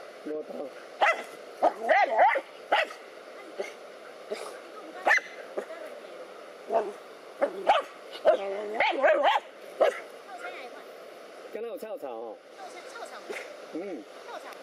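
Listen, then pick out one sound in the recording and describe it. A dog barks and yaps sharply.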